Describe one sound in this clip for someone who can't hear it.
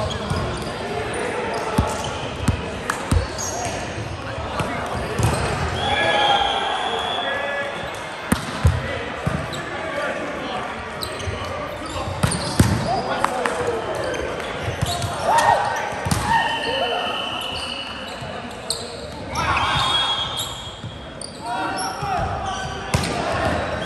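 A volleyball thumps off players' hands and arms.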